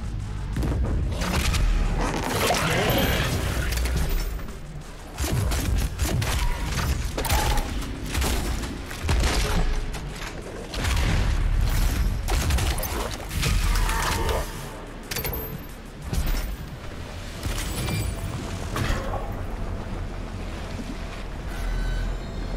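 A shotgun fires repeatedly with heavy booms.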